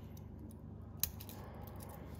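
A metal watch clicks softly as a hand picks it up.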